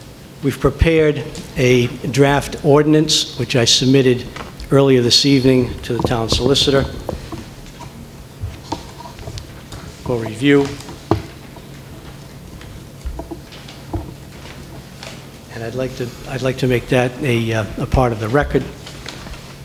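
An elderly man speaks calmly into a microphone in a room with a slight echo.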